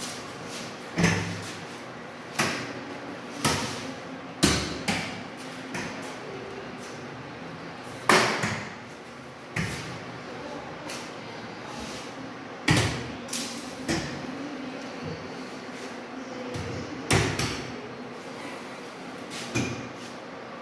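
Cabinet doors open and shut with sharp knocks and clicks.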